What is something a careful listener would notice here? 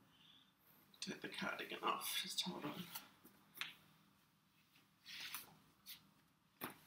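Fabric rustles as a jacket is taken off.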